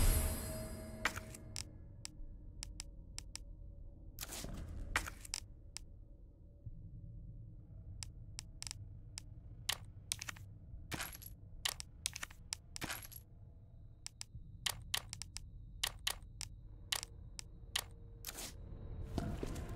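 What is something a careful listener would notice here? Short menu clicks tick as items are browsed.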